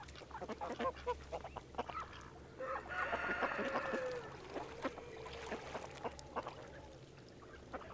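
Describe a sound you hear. Ducks quack and call near the water.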